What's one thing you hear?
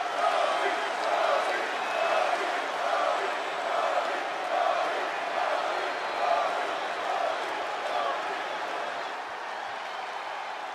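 A large crowd chants rhythmically in a big arena.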